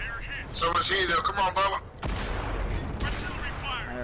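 A shell explodes with a heavy blast.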